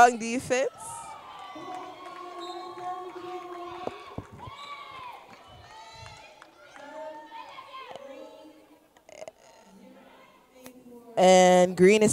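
Sneakers squeak sharply on a wooden floor in an echoing gym.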